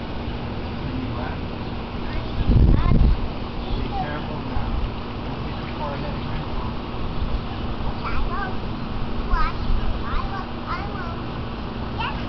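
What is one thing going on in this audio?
A young child talks and squeals nearby.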